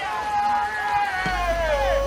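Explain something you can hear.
A goalkeeper kicks a football with a dull thud, far off.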